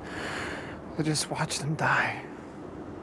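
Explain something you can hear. Another man answers quietly.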